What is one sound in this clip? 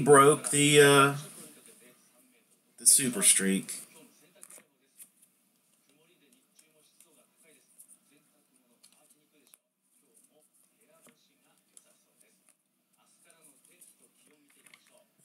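Stiff cards flick and rustle softly as they are leafed through by hand.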